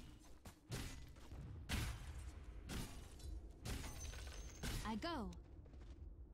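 Game spell and weapon effects whoosh and crash in bursts.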